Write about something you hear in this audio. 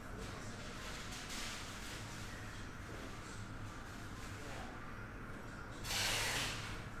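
Trading cards slide and rustle against each other in a man's hands.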